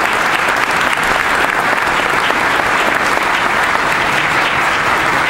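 A crowd claps and applauds in a large hall.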